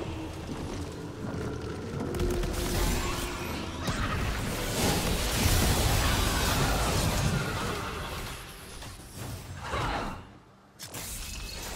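Magic spells crackle and blast in a busy video game fight.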